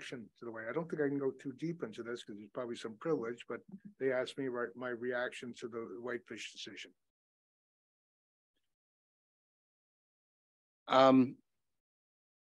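An older man speaks calmly over a microphone.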